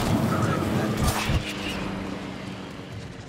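A bomb explodes on water.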